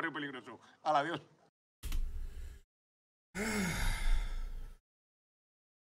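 A man speaks with animation and laughs.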